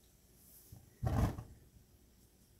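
A gas fire ignites with a soft whoosh.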